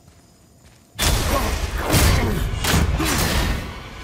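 A huge creature roars loudly and growls.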